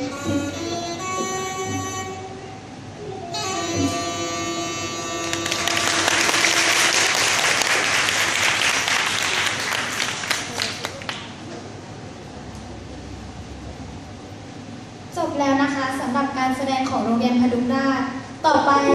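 Music plays through loudspeakers in a large hall.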